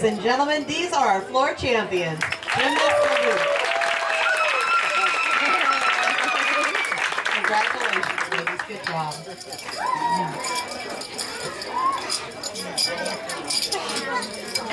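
A crowd of children and adults cheers and shouts excitedly nearby.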